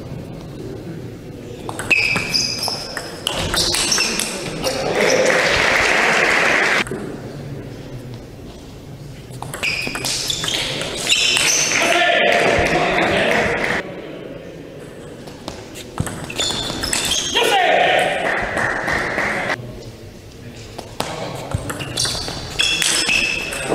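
A table tennis ball clicks back and forth between bats and the table.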